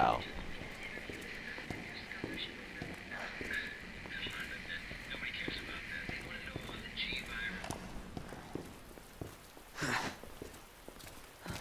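Footsteps walk steadily on wet pavement.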